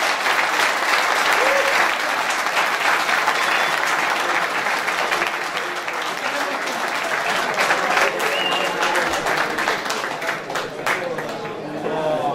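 A crowd applauds in a room.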